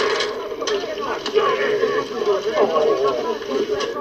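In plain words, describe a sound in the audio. Eggs sizzle as they fry.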